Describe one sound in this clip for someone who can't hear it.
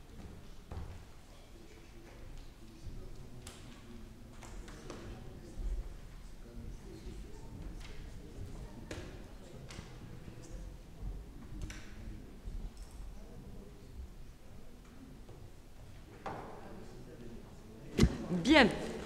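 People murmur quietly in a large room.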